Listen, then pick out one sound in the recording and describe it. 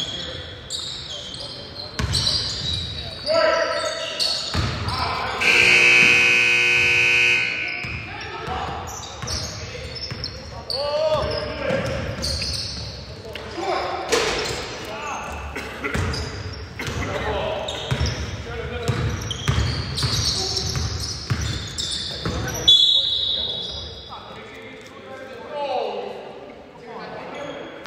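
Men call out to each other across an echoing gym.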